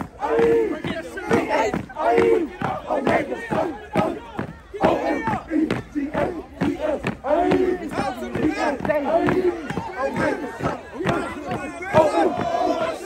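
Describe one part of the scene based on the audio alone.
Feet stomp in a steady beat on pavement.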